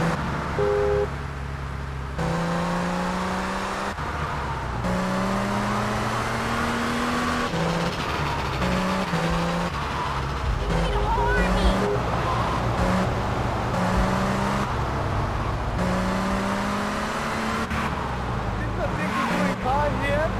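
A sports car engine revs hard, climbing and dropping as it shifts gears.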